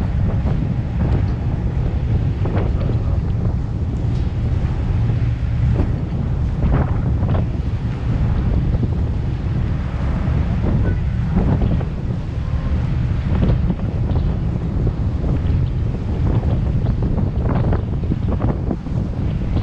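Choppy river water splashes against a boat's hull.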